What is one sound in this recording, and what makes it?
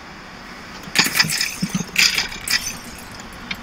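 Coins jingle as they are collected in a game.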